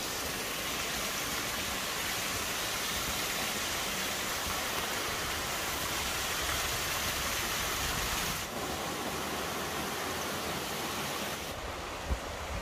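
A small waterfall splashes steadily into a rocky pool outdoors.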